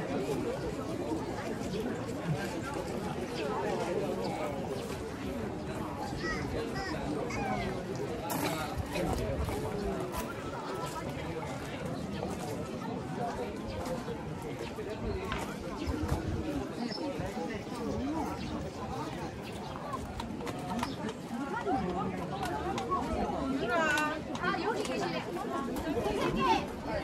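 A crowd of men and women chatters all around, outdoors.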